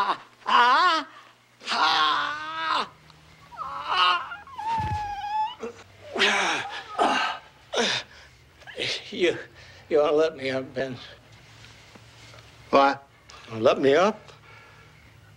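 An elderly man shouts angrily and strains.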